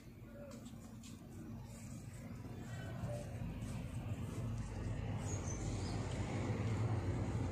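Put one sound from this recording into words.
Hands softly rustle loose flower petals.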